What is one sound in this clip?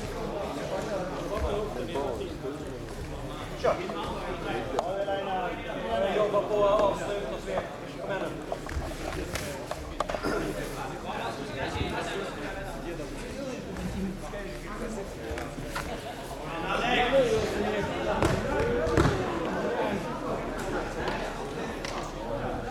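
Bodies thump and scuff on a mat.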